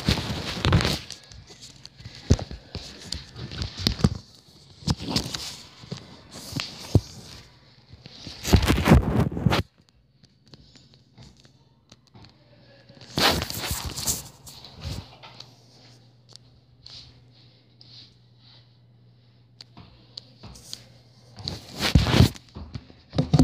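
A phone rustles and bumps as it is handled.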